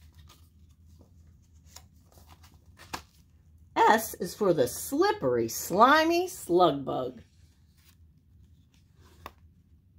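Paper pages rustle as a pop-up book is turned.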